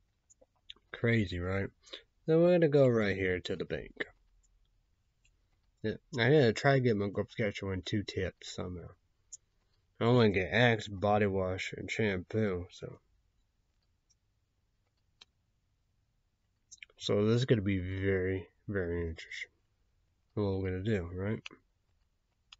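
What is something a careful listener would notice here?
A young man talks calmly into a nearby microphone, in short bursts with pauses.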